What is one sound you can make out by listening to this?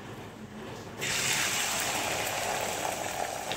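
Beaten eggs sizzle loudly as they hit hot oil in a pan.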